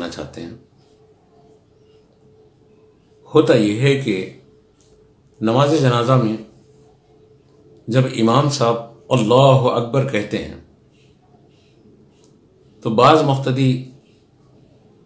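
An elderly man speaks calmly into a close microphone, in short phrases with pauses.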